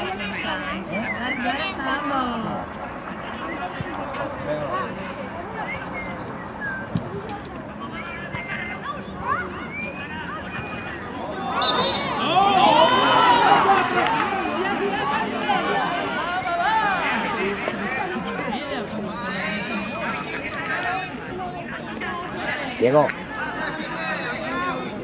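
Many children shout and call out across an open outdoor field.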